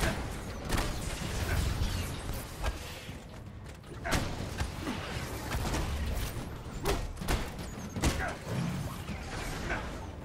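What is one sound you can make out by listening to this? Heavy blows and metallic impacts thud and clang repeatedly.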